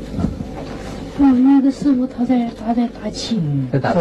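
A young man talks softly.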